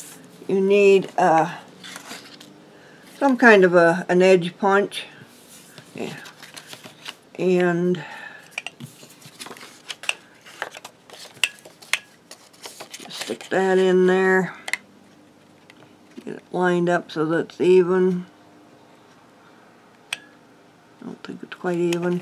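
Paper rustles and slides as hands handle it.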